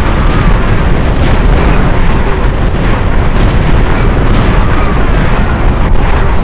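Rapid gunfire crackles in a battle.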